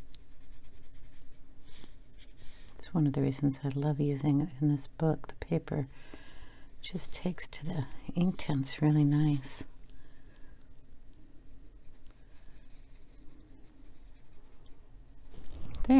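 A brush softly strokes across paper.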